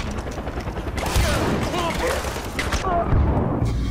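Rifle shots crack loudly at close range.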